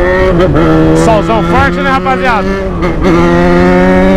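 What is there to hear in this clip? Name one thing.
A motorcycle engine revs up and down quickly during gear changes.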